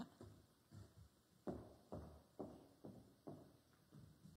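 Footsteps walk away across a hard floor.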